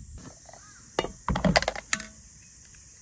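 A spoon scrapes and knocks against a jar.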